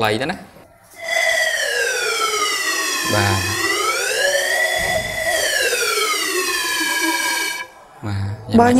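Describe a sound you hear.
A woman blows a bottle whistle, its tone sliding down and up in pitch.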